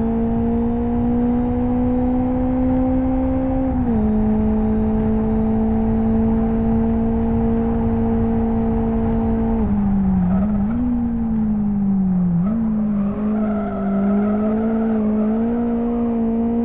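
A car engine drones steadily at high revs, dropping in pitch as gears change.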